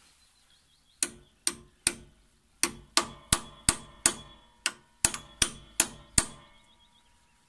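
A hammer strikes metal in quick ringing blows.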